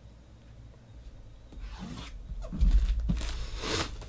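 A blade slits plastic wrap.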